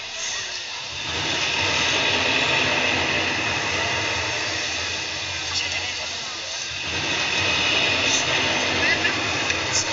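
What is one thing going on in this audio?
A large crowd cheers and chatters loudly in the open air.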